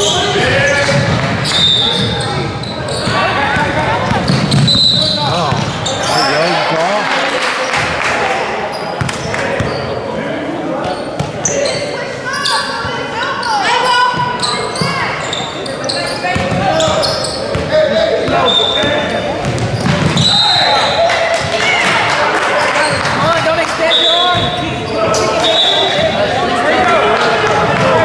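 Children and adults chatter and call out, echoing in a large hall.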